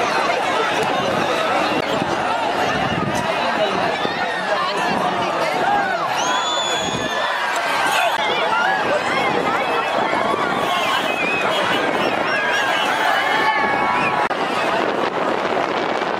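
A large outdoor crowd cheers and shouts excitedly.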